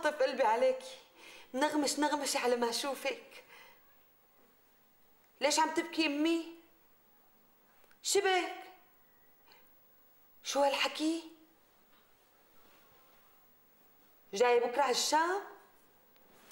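A middle-aged woman speaks anxiously into a phone, in bursts with pauses.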